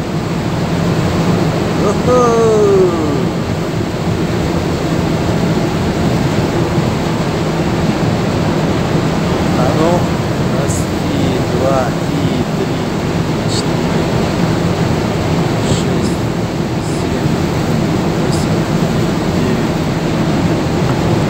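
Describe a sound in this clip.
Waves splash and rush against the ship's hull.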